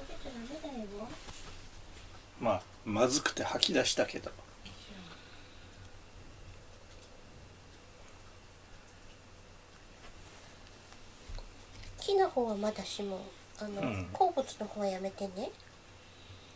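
A cat meows repeatedly nearby.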